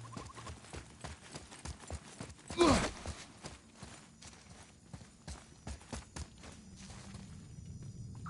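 Heavy footsteps thud quickly on stone.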